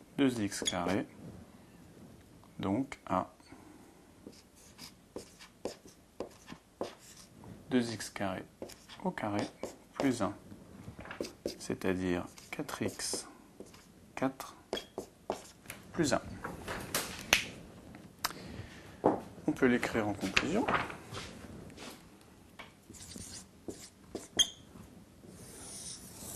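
A man explains calmly and clearly, close to a microphone.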